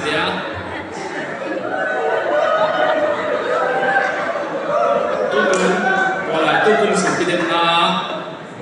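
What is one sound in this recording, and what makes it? A young woman speaks into a microphone, her voice carried over loudspeakers and echoing in a large hall.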